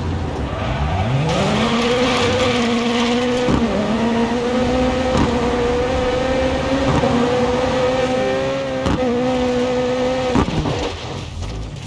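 A rally car engine revs up and roars at high speed.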